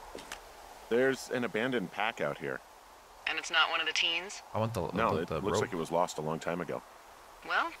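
A man speaks calmly over a walkie-talkie.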